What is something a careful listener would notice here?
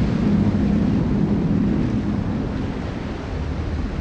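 A shell splashes into the water.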